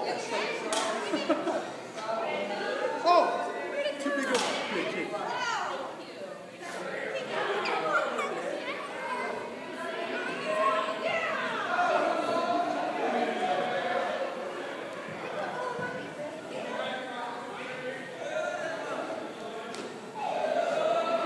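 Women talk and call out nearby.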